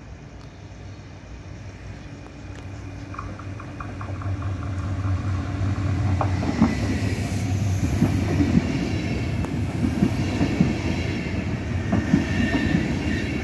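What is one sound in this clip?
A passenger train approaches and rushes through the station with a rising roar.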